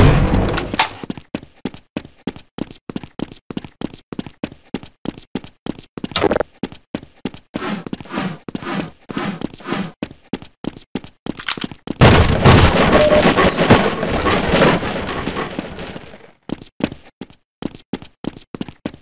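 Footsteps clack steadily on a hard floor.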